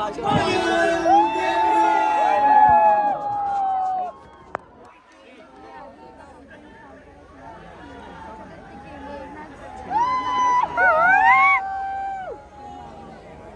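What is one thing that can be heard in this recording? A large crowd screams and cheers loudly.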